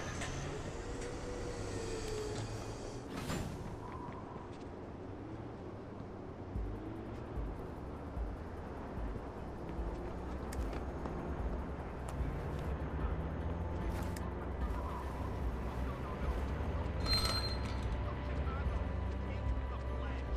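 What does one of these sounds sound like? Footsteps walk and scuff on hard ground.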